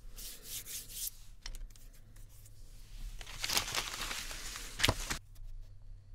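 A hand rubs and rustles across a sheet of paper.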